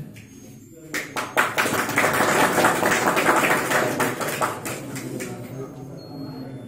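A group of people clap their hands and applaud.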